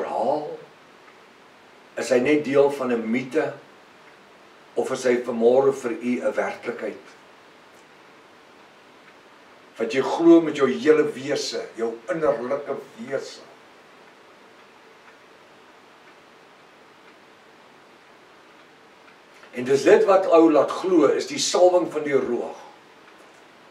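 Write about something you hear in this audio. A middle-aged man speaks calmly and expressively close to a microphone, with long pauses.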